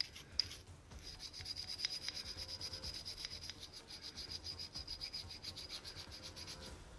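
A toothbrush scrubs briskly against metal.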